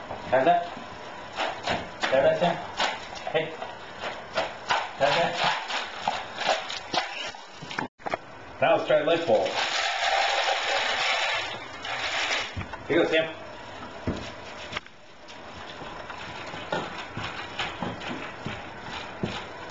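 A dog eats kibble from a bowl, crunching.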